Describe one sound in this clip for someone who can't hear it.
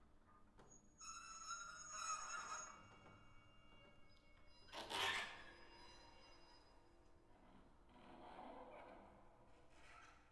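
Electronic tones play through loudspeakers in a large room.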